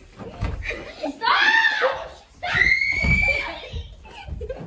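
A young child screams and squeals excitedly close by.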